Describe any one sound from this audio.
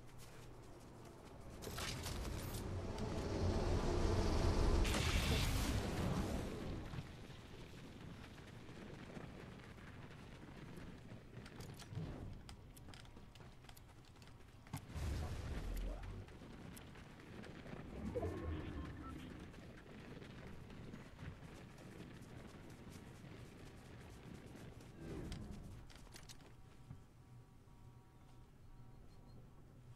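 Footsteps patter quickly on grass and pavement.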